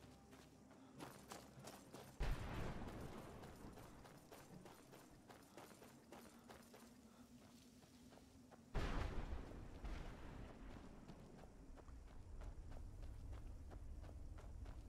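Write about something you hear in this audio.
Footsteps crunch over gravel at a steady walking pace.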